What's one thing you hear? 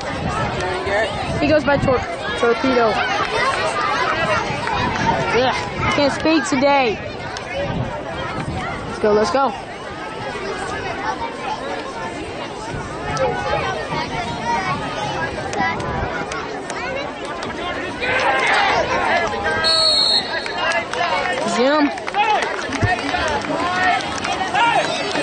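Several young men talk and call out nearby, outdoors.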